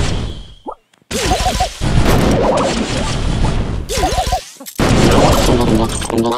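Blasts and explosions burst from a video game battle.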